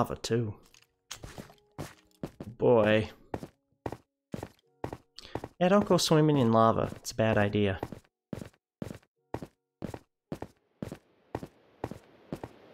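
Footsteps tap on stone at a quick, steady pace.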